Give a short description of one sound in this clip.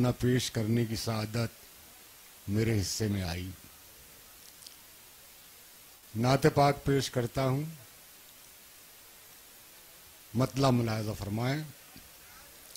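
An elderly man recites with feeling in a raised voice through a microphone and loudspeakers, pausing between lines.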